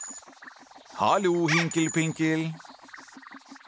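A small creature voice sings out a playful, wavering call.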